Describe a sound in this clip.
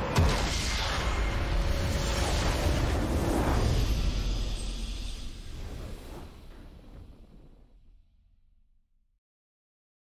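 A triumphant game fanfare rings out and slowly fades away.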